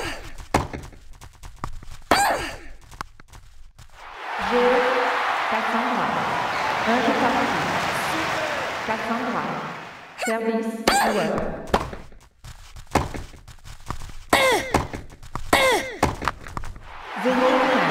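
A tennis ball is struck with a racket, back and forth.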